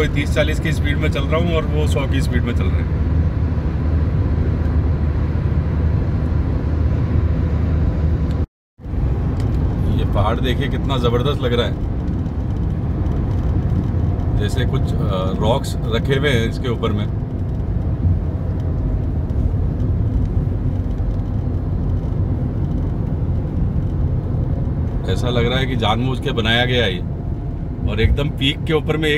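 A car's tyres rumble steadily on a smooth road.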